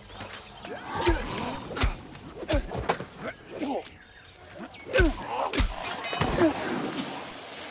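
Weapons clash and strike in a fight with sharp hits.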